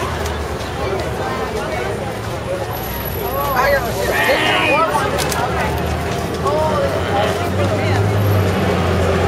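A crowd of men and women chatters and calls out nearby, outdoors.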